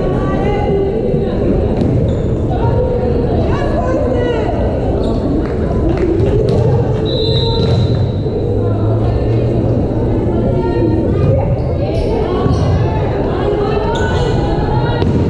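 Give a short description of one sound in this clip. A crowd of spectators chatters steadily in a large echoing hall.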